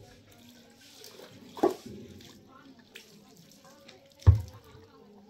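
Water pours from a jug into a metal cup and splashes onto the concrete.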